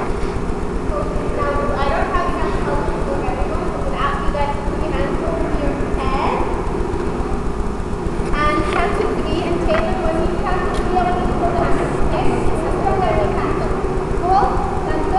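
A man speaks to a group with animation in a large echoing hall.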